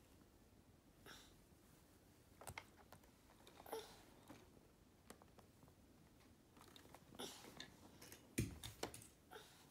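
Small plastic toy cars click and clatter against a plastic toy.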